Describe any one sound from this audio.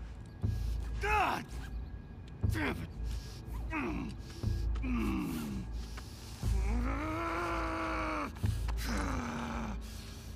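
A man groans and cries out in pain.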